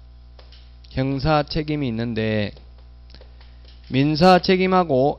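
A man lectures into a microphone with animation.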